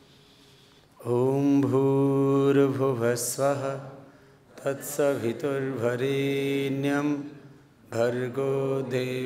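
A man chants in a full, rising and falling voice into a microphone.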